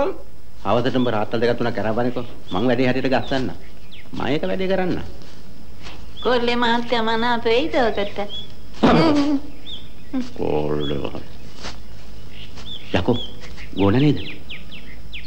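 Middle-aged men talk with animation, close by.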